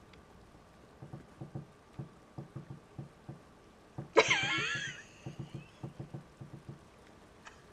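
A young woman talks quietly into a microphone.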